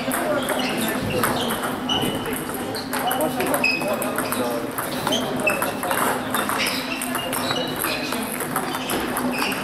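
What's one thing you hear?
A table tennis ball clicks back and forth between paddles and a table in an echoing hall.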